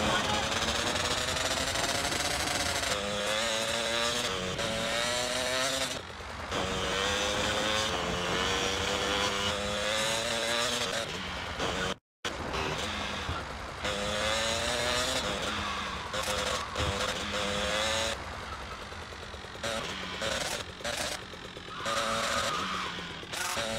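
A motorbike engine hums and revs steadily.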